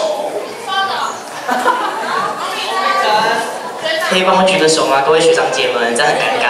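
A young man speaks into a microphone through loudspeakers in a large echoing hall.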